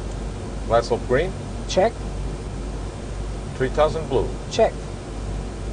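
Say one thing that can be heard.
A man speaks calmly over a headset microphone in short phrases.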